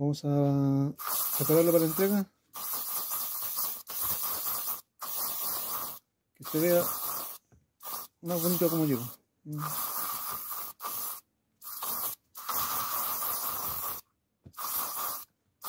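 A hand rubs and brushes leather sandals.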